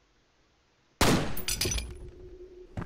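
A pistol shot bangs loudly.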